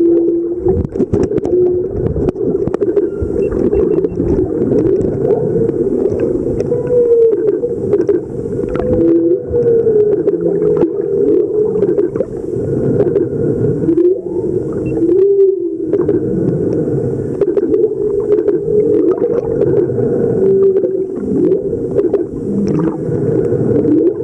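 A whale sings underwater in long, wavering moans and whoops.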